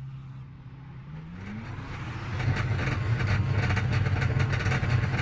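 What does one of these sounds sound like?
A race car engine revs up and accelerates.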